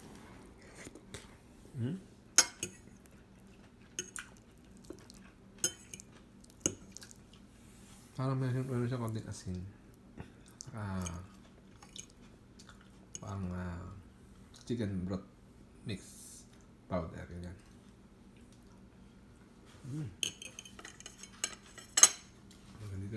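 A metal fork clinks against a ceramic plate.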